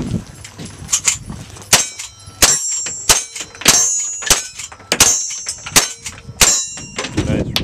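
Sharp rifle shots ring out in quick succession outdoors.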